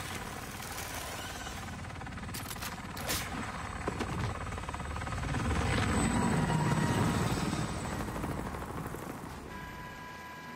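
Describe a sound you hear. A helicopter's rotor whirs loudly overhead.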